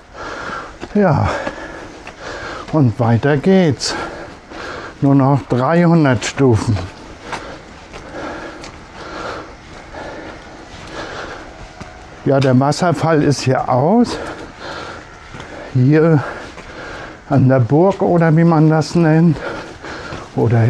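A middle-aged man talks with animation, close by, outdoors.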